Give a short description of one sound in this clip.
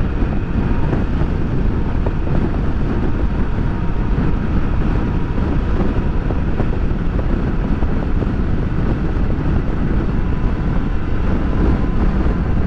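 Wind buffets loudly against the rider's microphone.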